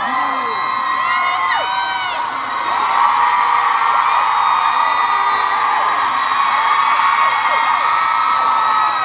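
Audience members whistle shrilly.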